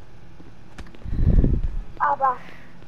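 Fists land with heavy, dull thuds.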